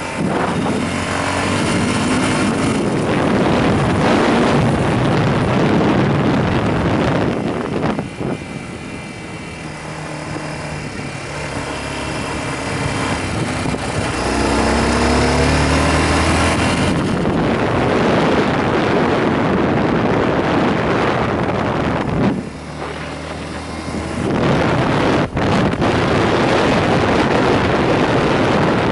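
A motorcycle engine hums steadily, rising and falling in pitch.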